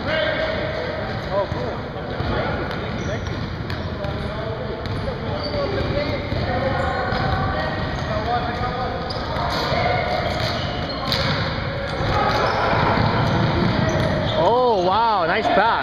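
Men's voices talk and call out across an echoing gym.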